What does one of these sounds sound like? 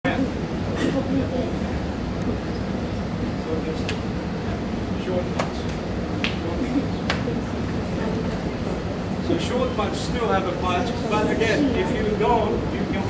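An older man speaks calmly nearby.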